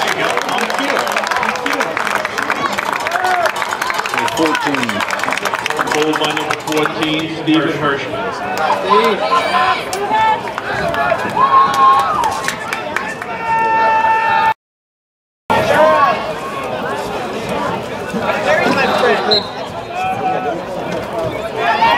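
Young men shout to each other across a playing field.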